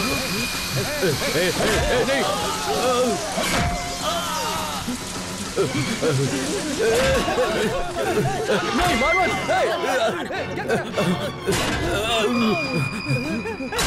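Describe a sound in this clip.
Men grunt and shout while fighting.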